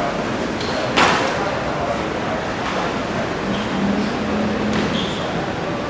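A squash ball cracks off a racket and smacks off the front wall.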